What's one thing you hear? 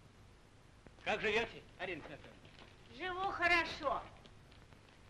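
A man speaks warmly nearby.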